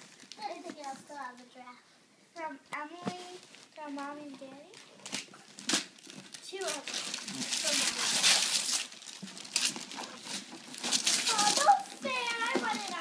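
Young girls talk excitedly close by.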